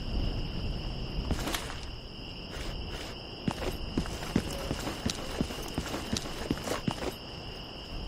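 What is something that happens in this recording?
Footsteps tread quickly over hard ground.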